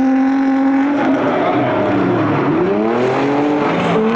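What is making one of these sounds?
Tyres squeal on wet tarmac.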